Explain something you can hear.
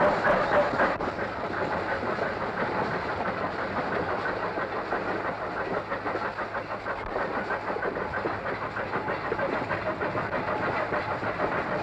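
Steam locomotive wheels clatter and rumble on rails.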